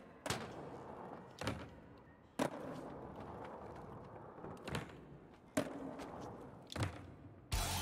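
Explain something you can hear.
A skateboard clacks down hard on landing.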